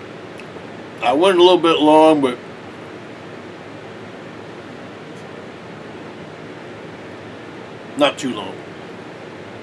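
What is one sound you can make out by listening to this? An elderly man speaks close by, calmly.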